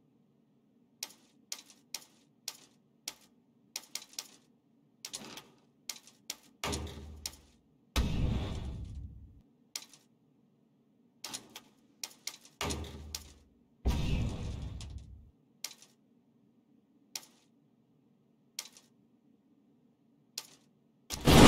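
Menu clicks tick quickly in a game.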